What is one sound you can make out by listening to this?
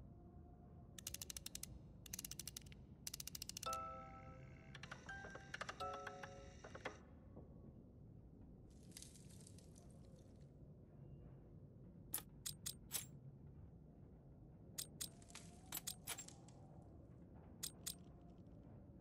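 A music box's metal cylinders click and ratchet as they turn.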